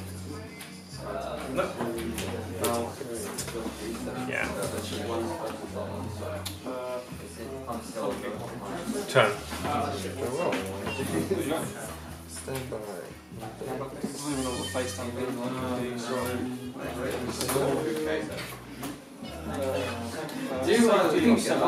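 Young men talk casually close by.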